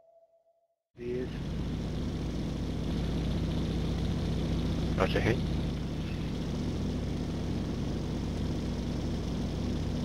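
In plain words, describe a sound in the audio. A plane's engine drones steadily from inside the cockpit.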